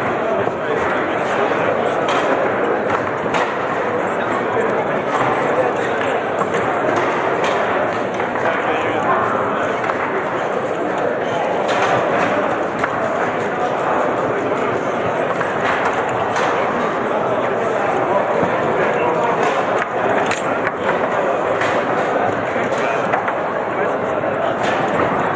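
Table football rods clatter and spin.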